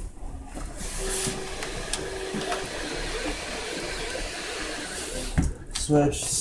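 A 3D printer whirs and buzzes as its motors move.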